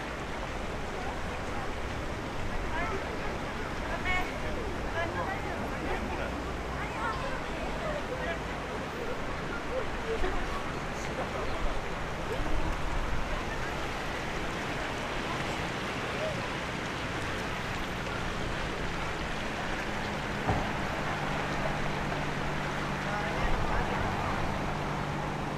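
Water trickles gently along a shallow stream.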